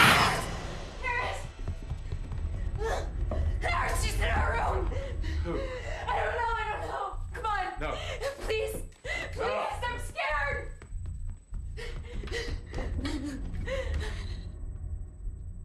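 A woman speaks urgently and breathlessly, close by.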